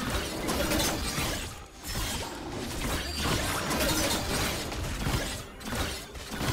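Video game combat effects clash and whoosh.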